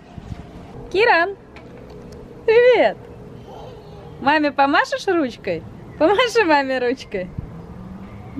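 A young child calls out in a high voice nearby.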